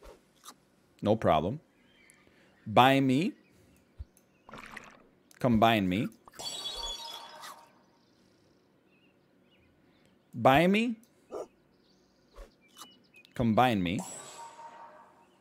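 A man speaks with animation into a nearby microphone, in short bursts.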